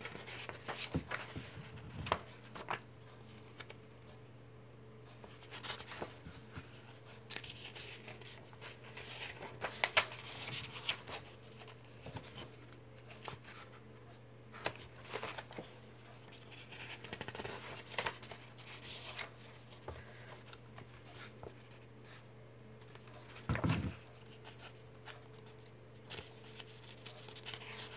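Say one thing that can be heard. Paper pages rustle and flip close by.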